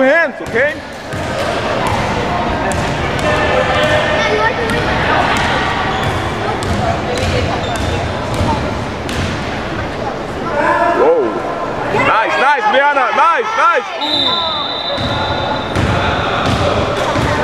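Spectators chatter and cheer in a large echoing gym.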